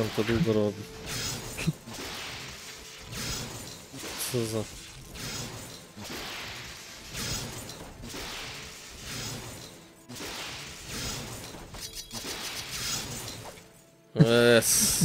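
Magic spells crackle and whoosh in repeated bursts.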